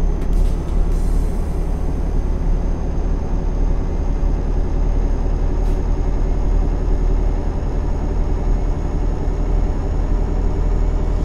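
A truck engine drones steadily at cruising speed.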